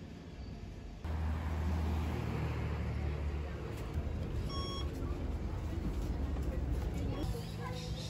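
A bus engine rumbles low.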